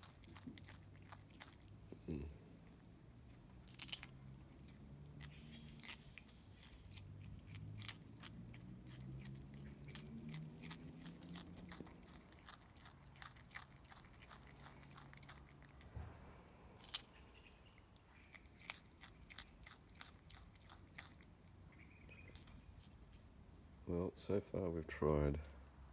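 A possum chews a carrot with soft, quick crunching clicks.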